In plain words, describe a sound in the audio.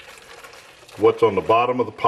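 Water pours into a metal cup.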